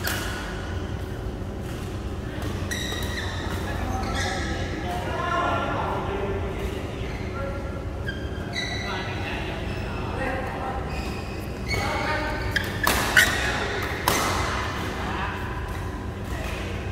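Men call out across a large echoing hall.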